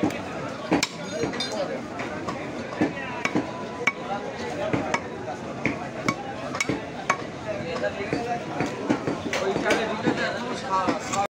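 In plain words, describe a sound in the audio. A cleaver chops sharply through meat onto a wooden block.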